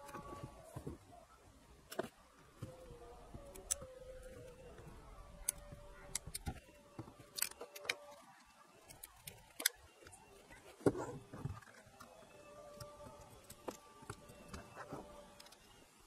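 A small screwdriver pries and taps at a plastic casing.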